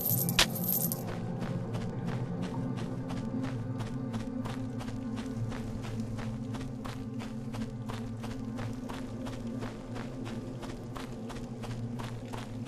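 Footsteps thud quickly and steadily on stone.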